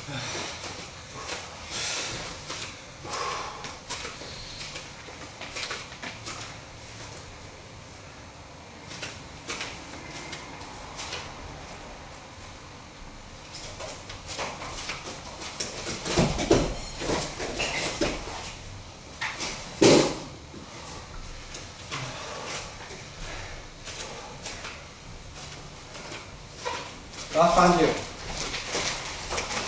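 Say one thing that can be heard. Bare feet shuffle and thump on a padded mat.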